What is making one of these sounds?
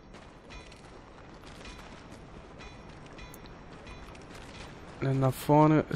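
Footsteps crunch over loose gravel.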